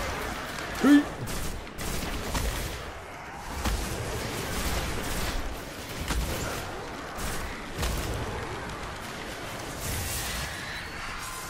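Game explosions and impacts thud and crackle.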